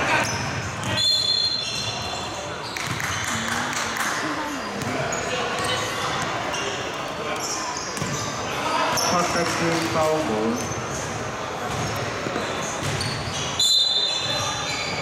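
Sneakers squeak sharply on a wooden floor in an echoing hall.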